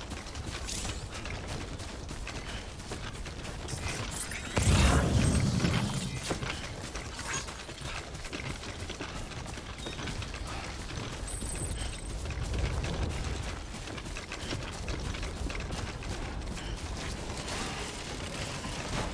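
Footsteps tread steadily over grass.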